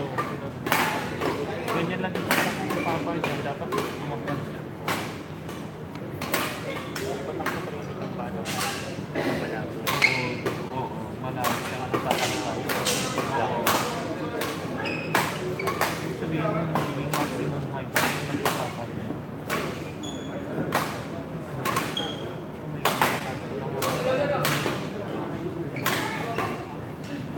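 Shuttlecocks are struck with sharp smacks of rackets, echoing in a large hall.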